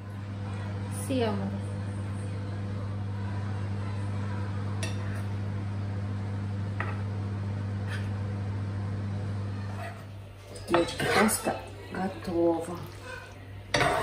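Pasta sizzles as it is tossed in a hot pan.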